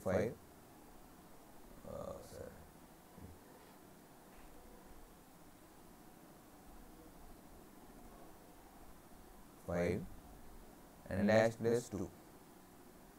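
A middle-aged man speaks calmly through a microphone, in short bursts with long pauses.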